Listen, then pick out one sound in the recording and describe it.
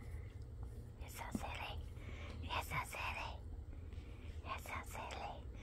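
A dog whines and grumbles close by.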